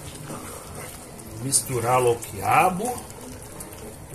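A wooden spoon scrapes and stirs food in a pan.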